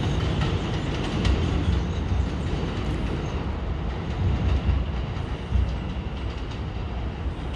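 A subway train rumbles along elevated tracks, slowly moving away.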